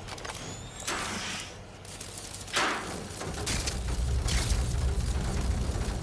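A small robot skitters along with light mechanical clicks.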